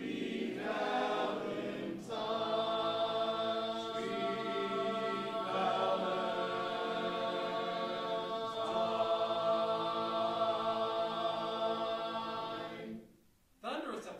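A group of male voices sings sustained chords in harmony.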